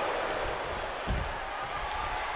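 A wrestler crashes onto the floor outside the ring.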